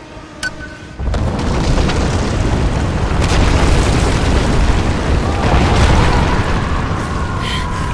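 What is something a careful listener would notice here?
Heavy stones crash and rumble as a ruin collapses.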